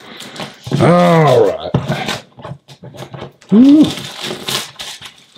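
Plastic wrap crinkles and rustles.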